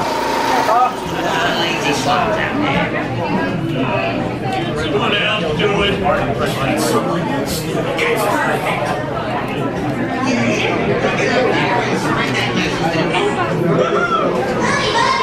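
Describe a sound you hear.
A crowd of people chatters in a busy, echoing room.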